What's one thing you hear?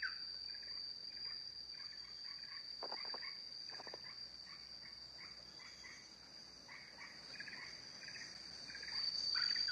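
A small bird chirps in quick, repeated calls.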